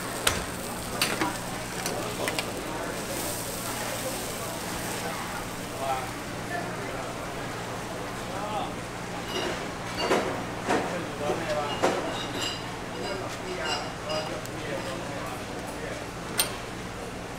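A metal spatula scrapes and clinks against metal.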